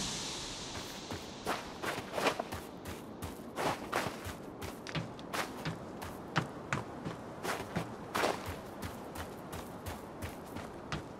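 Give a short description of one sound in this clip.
Footsteps crunch quickly over snow and gravel.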